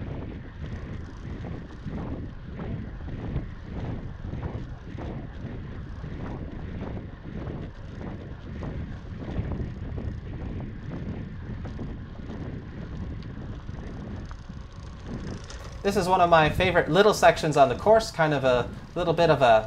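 Wind buffets and rumbles past a moving bicycle.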